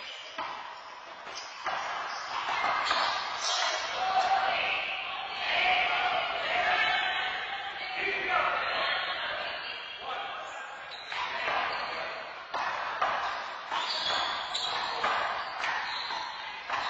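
Men call out to each other in an echoing hall.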